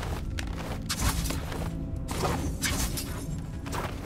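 Crackling magical energy bursts in short surges.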